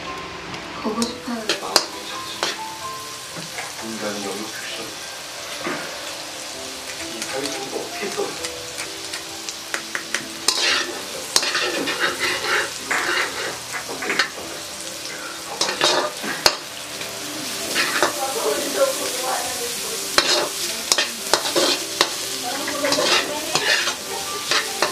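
Food sizzles faintly in a hot wok.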